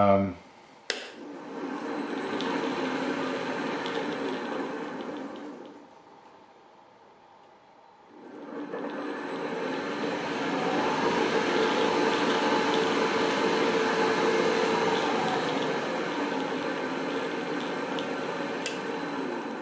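A drill press motor hums and whirs steadily.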